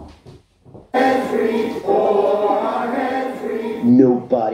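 A man sings loudly and with energy.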